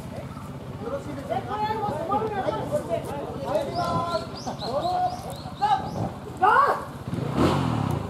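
A crowd of spectators calls out and cheers nearby.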